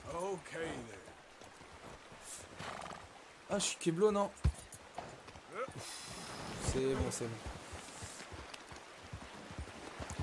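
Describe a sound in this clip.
Horse hooves clop on rock.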